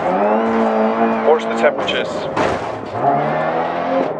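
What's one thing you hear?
A car's body bangs and scrapes in a sudden crash.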